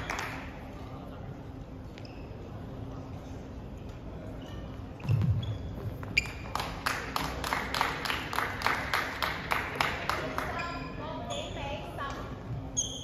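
A racket smacks a shuttlecock back and forth in a large echoing hall.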